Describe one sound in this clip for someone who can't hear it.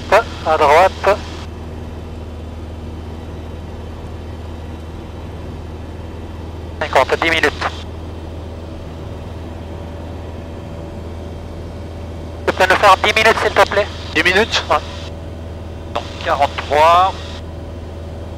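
A man speaks calmly through a headset intercom.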